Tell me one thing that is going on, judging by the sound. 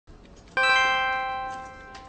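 Fingers tap on a keyboard.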